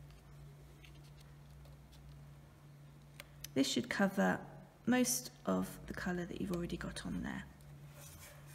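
Stiff paper rustles softly as fingers press and fold it.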